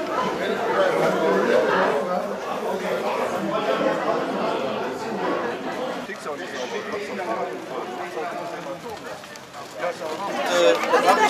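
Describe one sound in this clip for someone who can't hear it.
Many people chatter and talk nearby.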